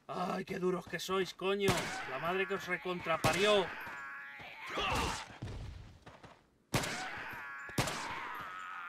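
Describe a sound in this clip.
Gunshots crack one after another.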